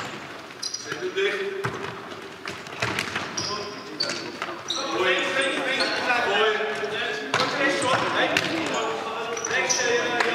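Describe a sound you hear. Sports shoes squeak sharply on a hard floor.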